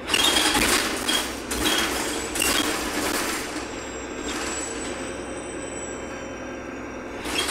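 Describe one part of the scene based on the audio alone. A bus engine hums and rattles as the bus drives along.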